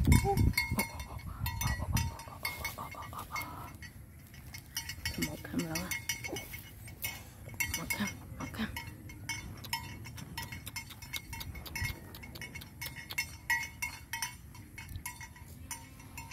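Water buffalo tear and munch grass close by.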